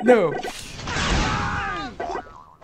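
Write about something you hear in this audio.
A cartoon explosion bursts with a deep boom.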